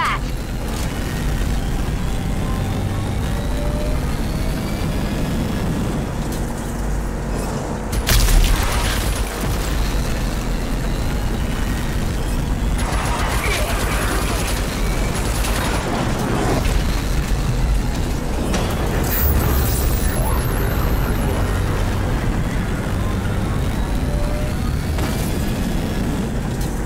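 Tyres rumble and crunch over a dirt road.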